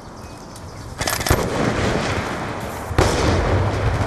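Gunshots crack and boom loudly.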